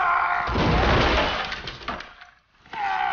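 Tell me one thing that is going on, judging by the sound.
Wooden debris crashes and clatters as a man falls.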